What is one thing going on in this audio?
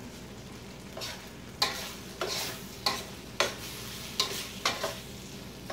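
A metal spoon scrapes and clinks against a pan.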